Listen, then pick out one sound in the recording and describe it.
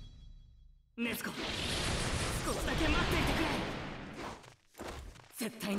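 Blades slash and strike with sharp impacts.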